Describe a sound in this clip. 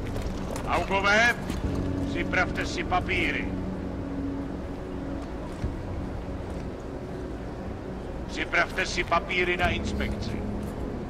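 A man speaks sternly, close by.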